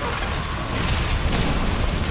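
A laser gun fires with a sharp zap.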